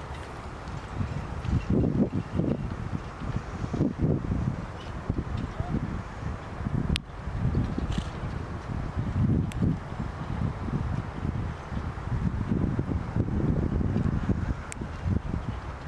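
Carriage wheels roll and rattle over sand.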